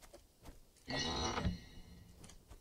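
A wooden chest creaks open with a loud clatter.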